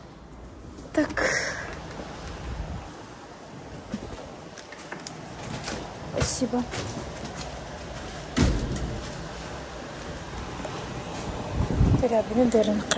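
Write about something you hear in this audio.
A door handle clicks and a door thuds open.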